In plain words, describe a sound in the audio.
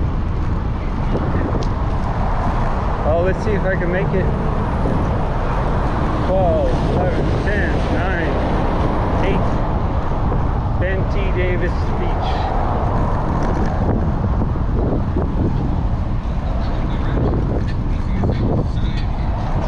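Wind rumbles loudly and steadily outdoors.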